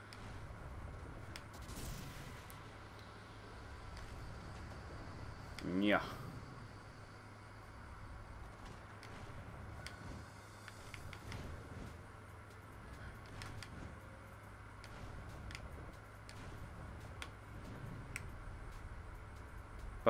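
A game character whooshes as it glides through the air.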